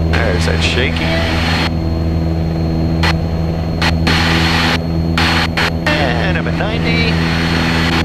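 A man speaks briefly over a headset radio, muffled under the engine noise.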